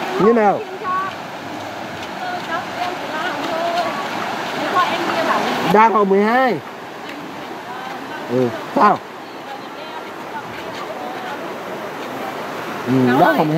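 Young girls call out loudly outdoors.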